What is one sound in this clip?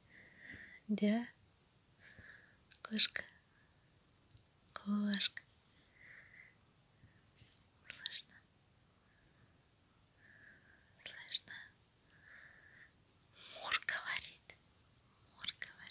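A hand strokes a cat's fur with soft rustling.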